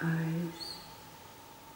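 An elderly woman speaks briefly and calmly into a microphone.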